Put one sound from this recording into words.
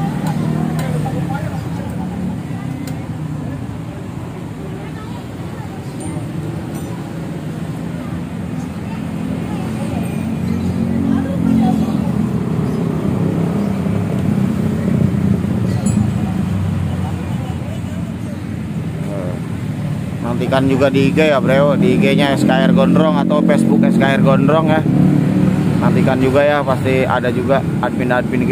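Motorbikes rumble past on a nearby road.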